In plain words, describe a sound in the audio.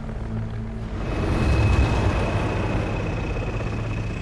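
A heavy vehicle rumbles by close.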